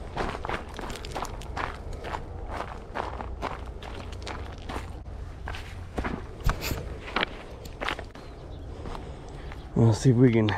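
Footsteps crunch on loose gravel and stones.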